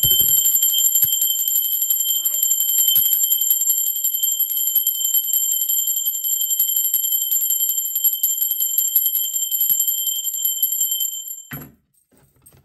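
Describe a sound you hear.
A small bell rings steadily.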